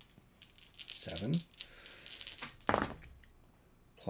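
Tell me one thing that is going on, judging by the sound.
Dice clatter into a tray.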